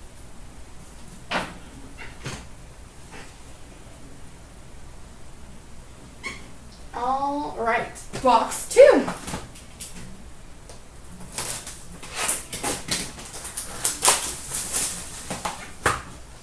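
Cardboard boxes rustle and knock as they are handled.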